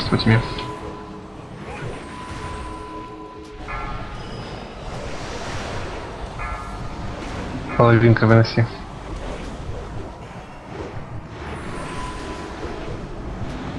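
Magic spells whoosh and crackle in a noisy fantasy battle.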